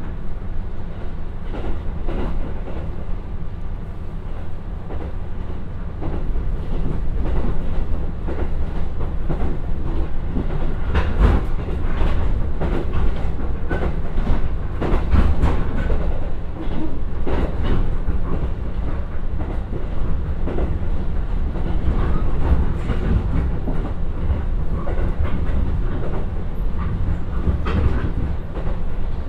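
A train rumbles steadily along the track at speed.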